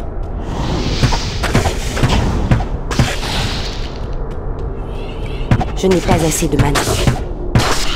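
Bowstrings twang as arrows are fired.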